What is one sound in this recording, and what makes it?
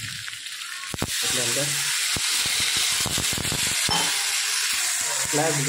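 Water pours into a hot pan and sizzles loudly.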